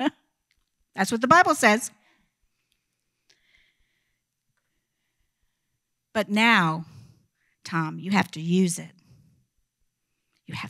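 A woman speaks slowly into a microphone, heard through loudspeakers in a large room, with long pauses.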